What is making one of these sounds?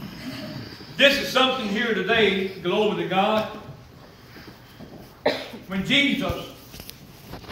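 An elderly man speaks into a microphone, in a room with some echo.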